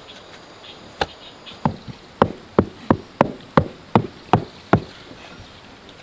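A tool knocks repeatedly against a wooden board.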